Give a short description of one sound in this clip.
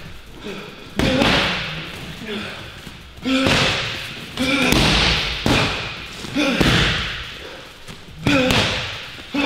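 Boxing gloves smack hard against punch pads.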